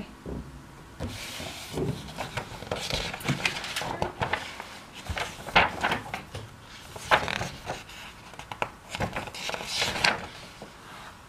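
Sheets of paper rustle.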